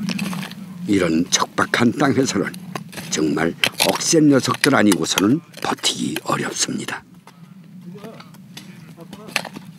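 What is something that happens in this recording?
A hand hoe scrapes and chops into dry soil.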